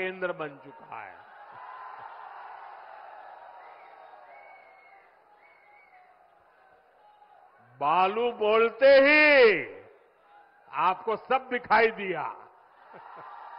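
An elderly man speaks loudly and forcefully through a microphone.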